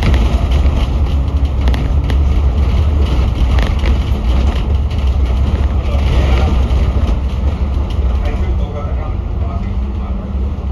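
A bus engine rumbles steadily from close by while driving.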